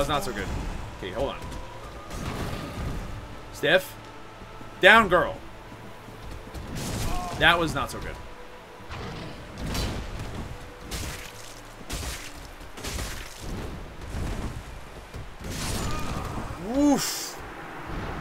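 A huge blade whooshes and slams heavily into the ground.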